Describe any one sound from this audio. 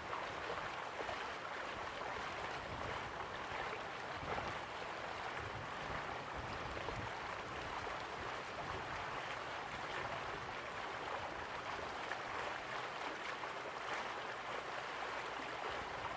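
A waterfall rushes steadily in the distance.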